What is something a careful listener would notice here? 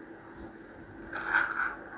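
A plastic toy taps down on a hard floor.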